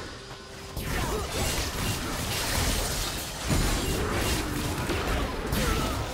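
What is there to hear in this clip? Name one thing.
Sharp hits clash repeatedly in a game fight.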